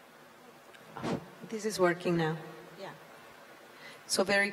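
A woman speaks softly into a microphone.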